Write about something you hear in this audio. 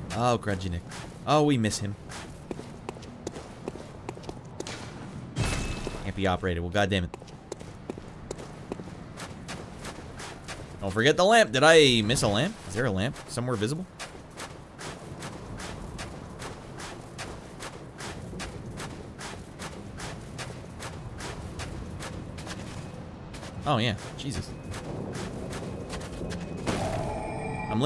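Quick footsteps crunch on snow.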